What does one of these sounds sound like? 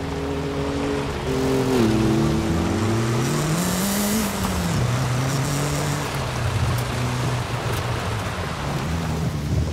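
A car engine revs hard, rising and falling in pitch as gears change.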